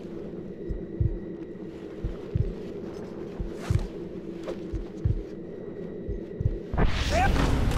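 Footsteps thud at an even pace on hard ground.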